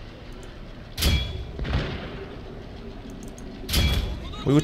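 Cannons boom in heavy bursts.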